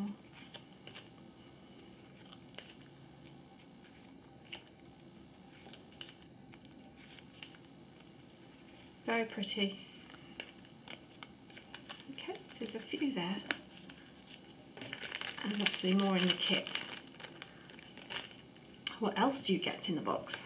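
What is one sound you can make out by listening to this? Stencil sheets rustle and tap softly as they are handled.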